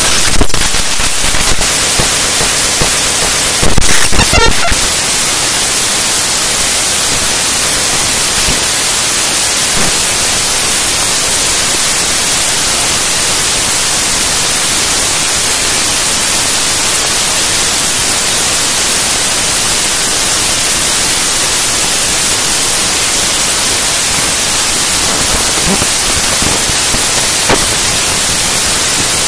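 Harsh, hissing noise music plays steadily, with a few loud bursts near the start.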